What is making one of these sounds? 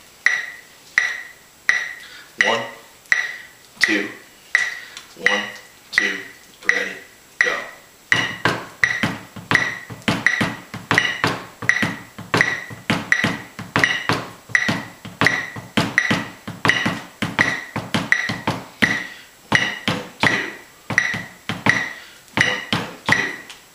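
A metronome ticks at a steady beat.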